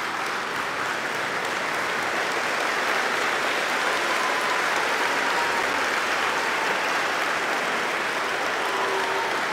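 A large crowd sings and cheers loudly in an echoing hall.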